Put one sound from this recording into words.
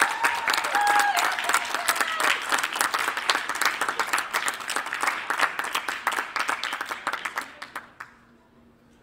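A steel drum band plays a lively tune in a large echoing hall, then stops.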